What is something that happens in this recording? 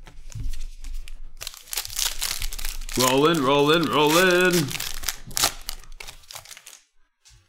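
Plastic card wrappers crinkle and rustle close by.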